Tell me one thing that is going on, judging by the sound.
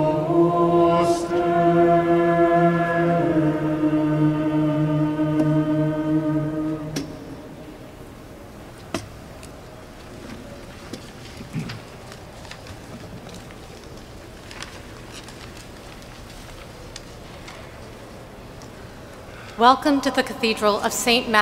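A choir of men and women sings a held chord that echoes through a large hall.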